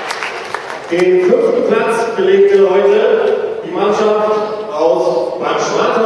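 A middle-aged man speaks with animation into a microphone over loudspeakers.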